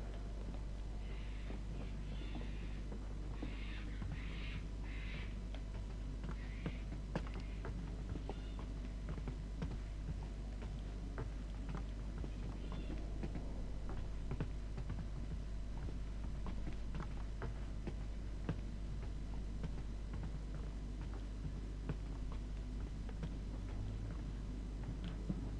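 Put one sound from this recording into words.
Footsteps thud slowly across wooden floors and stairs.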